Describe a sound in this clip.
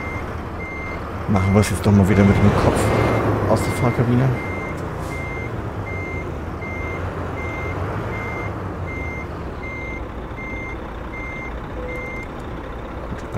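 A reversing alarm beeps at an even pace.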